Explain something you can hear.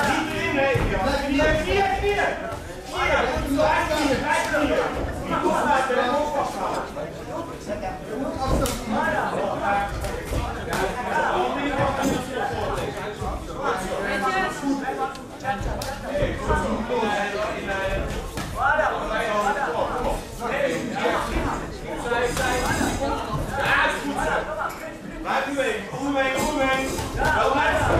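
Men in a crowd shout and cheer throughout in a large echoing hall.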